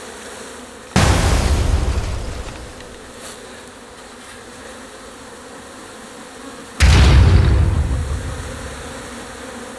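A frame is shaken sharply, dropping bees with a loud rush of buzzing.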